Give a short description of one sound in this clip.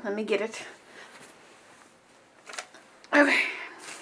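A sheet of paper rustles as a hand picks it up.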